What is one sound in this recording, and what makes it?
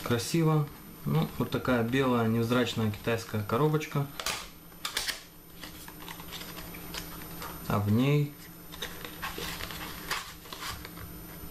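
A small cardboard box is opened and closed with soft scrapes.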